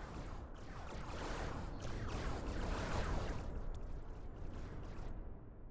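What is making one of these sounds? Explosions rumble and crackle.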